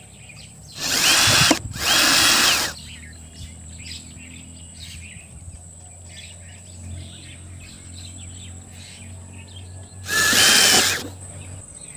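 An electric drill whirs in short bursts.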